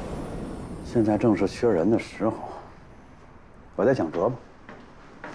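A man speaks calmly and thoughtfully close by.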